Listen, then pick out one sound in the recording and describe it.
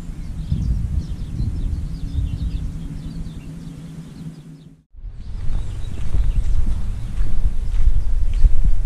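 Wind blows outdoors, rumbling and gusting.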